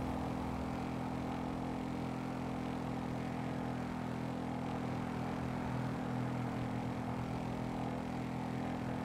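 A motorbike engine hums steadily at speed.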